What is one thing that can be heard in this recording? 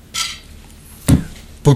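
A bottle thuds down on a table.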